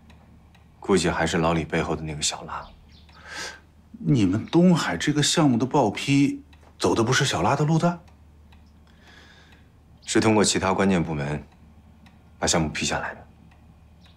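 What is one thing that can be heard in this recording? A man speaks calmly and seriously, close by.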